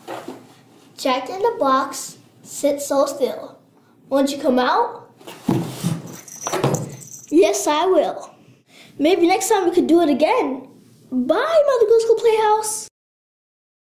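A child sings a song in a bright, clear voice.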